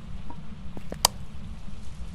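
A flashlight switch clicks once.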